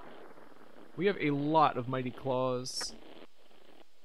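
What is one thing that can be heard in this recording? A young man speaks briefly and animatedly into a close microphone.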